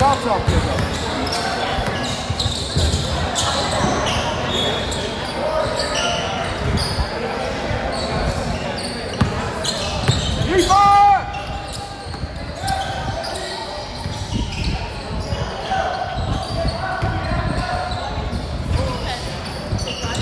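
A basketball bounces on the court, echoing in a large hall.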